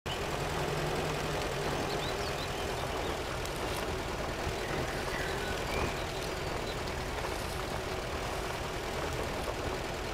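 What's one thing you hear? Tyres squelch and grind through mud.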